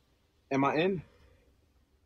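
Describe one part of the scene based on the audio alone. A young man asks a short question quietly.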